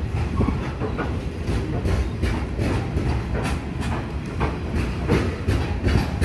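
A heavy freight train rumbles past close by.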